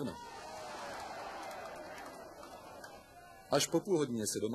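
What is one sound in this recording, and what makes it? A large crowd roars in a stadium and slowly quietens.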